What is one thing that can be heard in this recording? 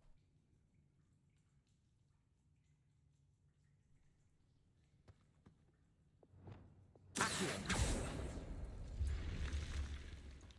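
A man talks quietly into a close microphone.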